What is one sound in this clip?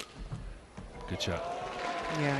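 A racket strikes a shuttlecock with a sharp smack.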